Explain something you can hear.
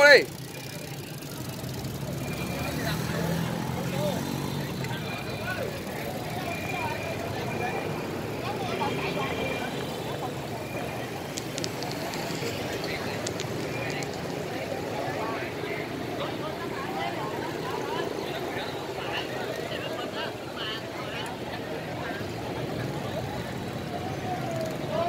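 A crowd of men and women chatter loudly outdoors.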